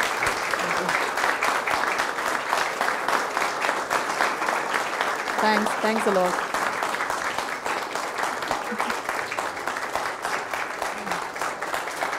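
A crowd applauds steadily in a room with some echo.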